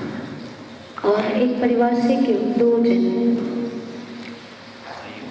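A man sings a long, drawn-out phrase through a microphone.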